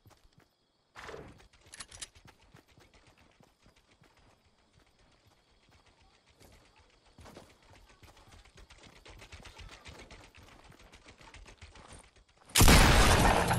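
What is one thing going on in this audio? Footsteps patter quickly over grass and wood.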